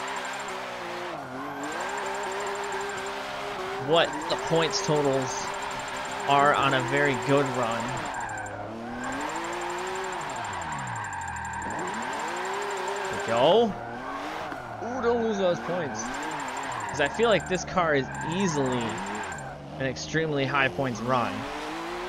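A car engine revs hard, its pitch rising and falling.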